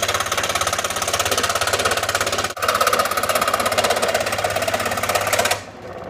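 A scroll saw buzzes rapidly as its blade cuts through material.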